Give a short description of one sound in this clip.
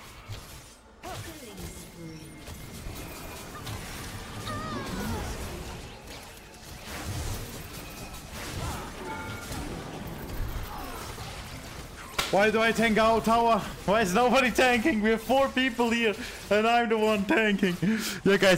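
Game combat effects whoosh and clash.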